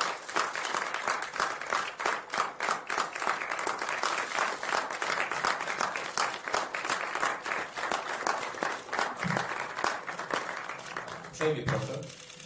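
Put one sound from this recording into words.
A crowd applauds steadily in a large room.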